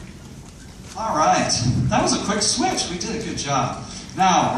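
A man speaks calmly into a microphone, heard over loudspeakers in a large echoing hall.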